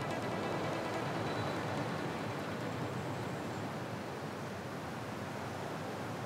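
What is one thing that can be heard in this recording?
Waves crash and roar onto the shore.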